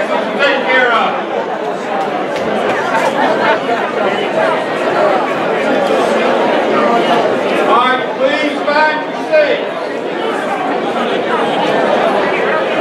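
A crowd of men and women chatters all around in a large room.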